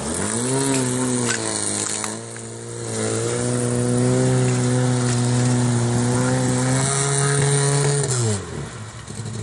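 A car engine roars loudly, revving as the car ploughs through deep water.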